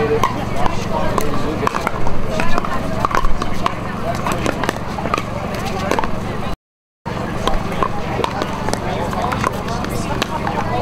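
A ball bounces on a hard court.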